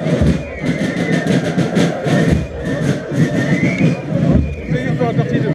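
Drums beat a fast, steady rhythm.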